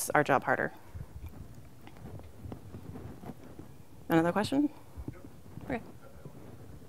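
A woman speaks through a microphone in a large hall, in short bursts with pauses.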